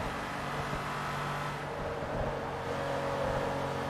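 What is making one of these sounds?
Tyres squeal on the track as a car corners.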